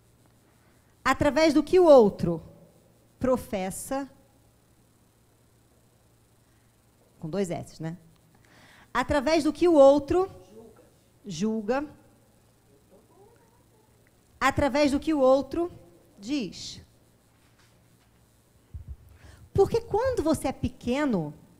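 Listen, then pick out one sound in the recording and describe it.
A woman speaks with animation through a microphone, in short bursts with pauses.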